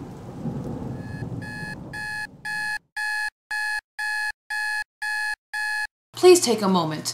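A digital alarm clock beeps in quick, even pulses.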